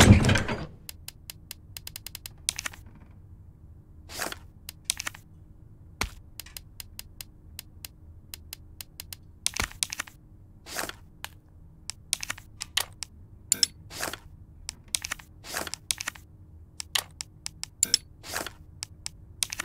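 Short menu clicks and blips tick rapidly as a cursor moves through a list.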